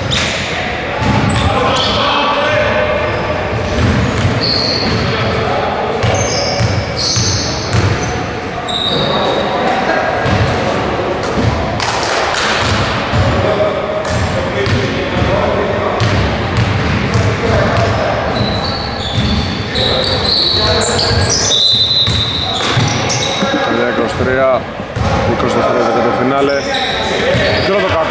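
Sneakers squeak sharply on a wooden court in a large echoing gym.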